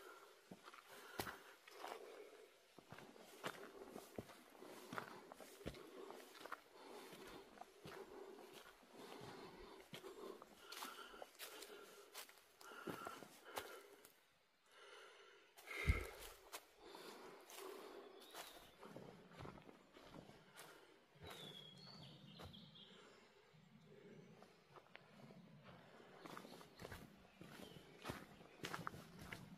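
Footsteps crunch on a dirt path strewn with dry leaves.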